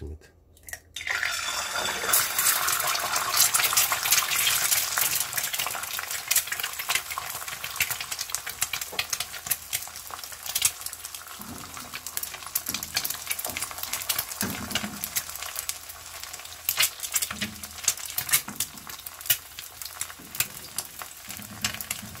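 An egg sizzles and crackles loudly in hot oil.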